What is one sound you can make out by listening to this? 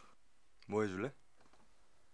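A young man speaks briefly with surprise.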